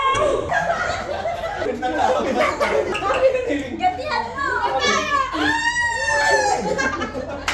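A group of young men and women shout and cheer excitedly nearby.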